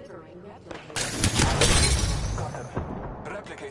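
Gunfire rattles in rapid bursts.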